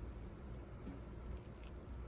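A liquid splashes softly as a finger dips into it.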